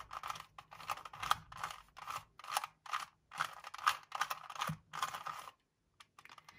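A plastic puzzle cube clicks and clacks as its layers are turned quickly.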